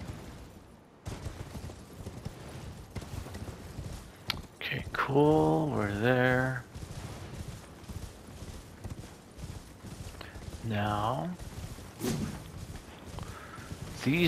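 Footsteps run quickly over stone paving and then through grass.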